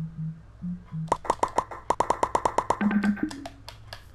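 A menu clicks in a rapid series of short ticks.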